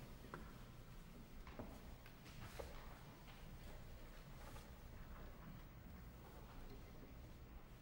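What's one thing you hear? A man speaks quietly and calmly.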